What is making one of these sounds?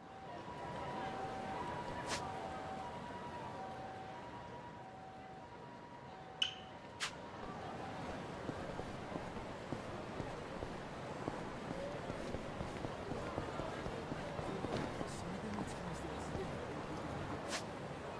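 A busy city street murmurs with distant traffic and crowd noise.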